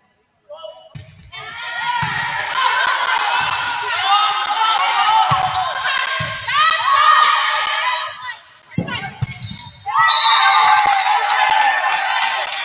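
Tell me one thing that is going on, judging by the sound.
Spectators cheer and shout loudly in a large echoing gym.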